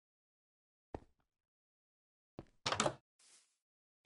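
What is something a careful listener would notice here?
A wooden door swings open with a creak.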